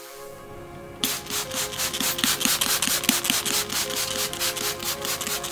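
Water hisses as it is sprayed over a car engine.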